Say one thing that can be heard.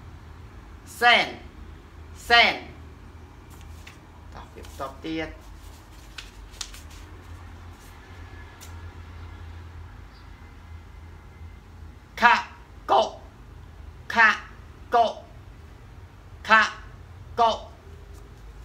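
A young man pronounces single words clearly and slowly, close by.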